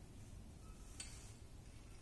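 Glass clinks sharply against glass.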